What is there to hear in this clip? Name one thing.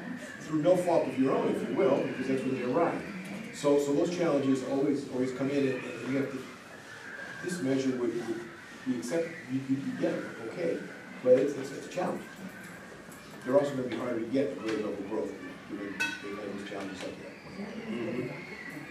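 A man speaks calmly in a room with a slight echo, heard from across the table.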